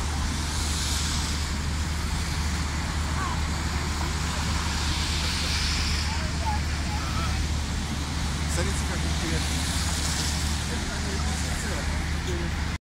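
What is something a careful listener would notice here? A crowd of people murmurs and chats at a distance outdoors.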